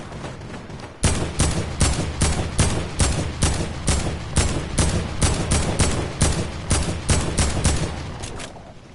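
A gun fires rapid shots in a steady stream.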